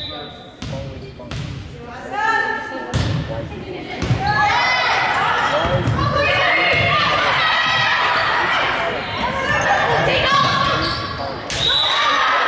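A volleyball is hit with sharp smacks.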